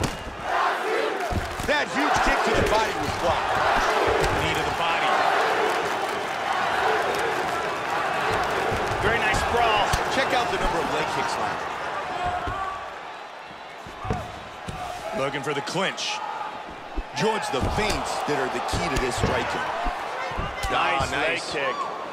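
A large crowd roars and cheers in an echoing arena.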